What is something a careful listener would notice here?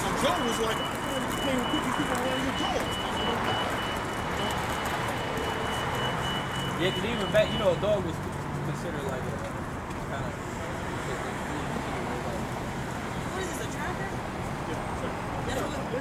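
City traffic hums steadily in the background.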